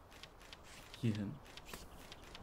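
A man murmurs briefly, close to a microphone.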